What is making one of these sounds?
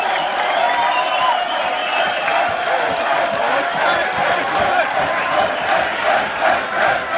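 A large crowd cheers and chants loudly in an echoing tent.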